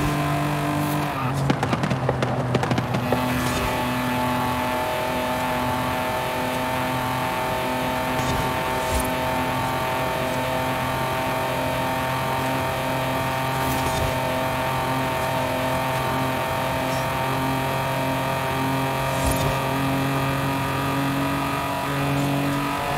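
A car engine hums steadily at high speed.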